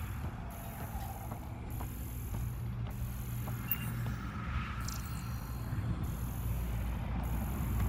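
A scanning device hums steadily.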